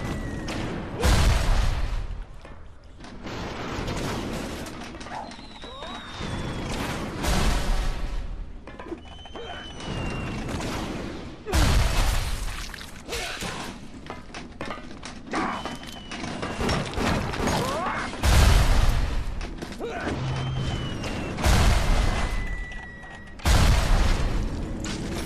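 Heavy objects crash and bang loudly.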